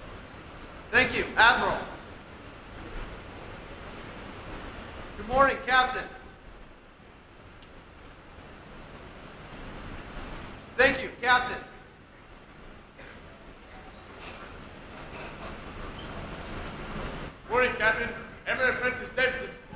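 A man reads out over a loudspeaker in a large echoing hall.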